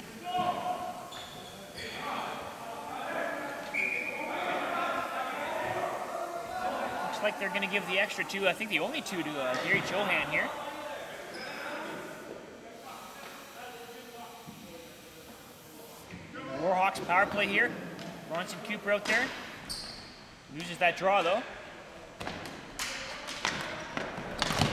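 Hockey sticks clack and tap on a hard floor.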